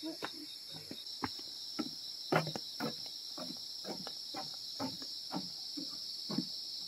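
Footsteps thud on a wooden walkway.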